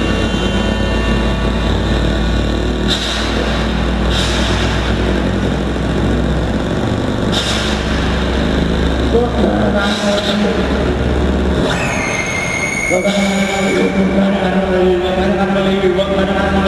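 Loud live music plays through a large PA in a hall.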